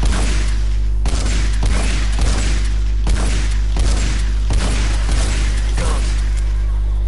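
Melee blows land with sharp, heavy thuds in quick succession.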